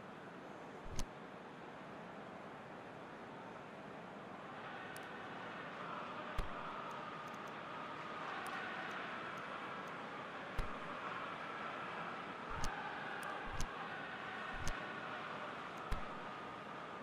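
Short game menu clicks sound now and then.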